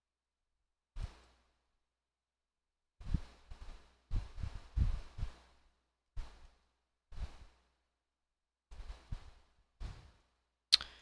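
A shovel digs into sand with soft, repeated crunches.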